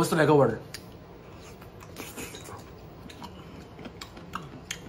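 A man chews food with soft smacking sounds.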